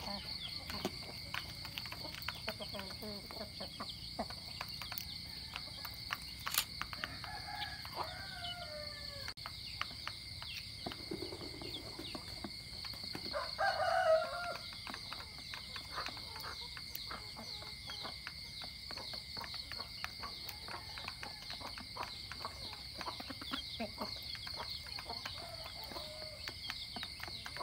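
Chickens peck at grain in a dish with quick, light taps.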